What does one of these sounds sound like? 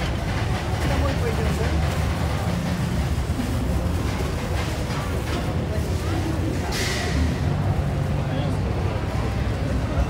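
A busy crowd murmurs and chatters outdoors.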